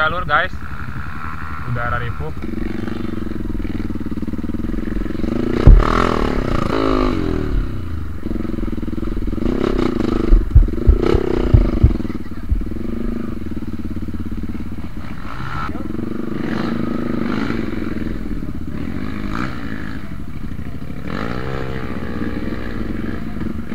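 A motorcycle engine runs close by, rising and falling as it revs.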